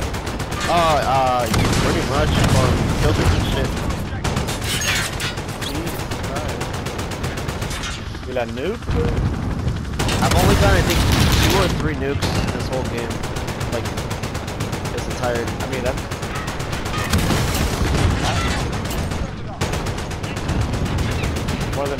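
Missiles explode with deep, heavy booms.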